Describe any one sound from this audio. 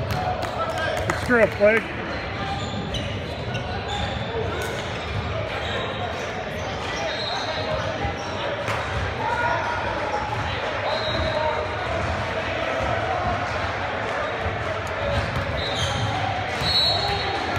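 Sneakers squeak on a gym court floor in a large echoing hall.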